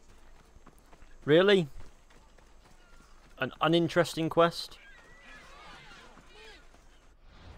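Footsteps run quickly over sand.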